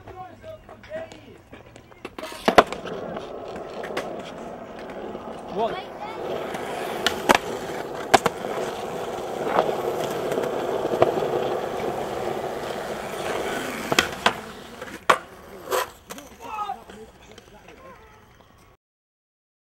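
Skateboard wheels roll on concrete.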